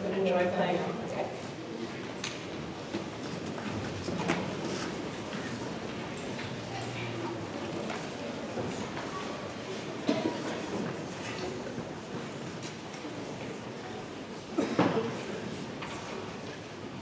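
An audience murmurs and chatters.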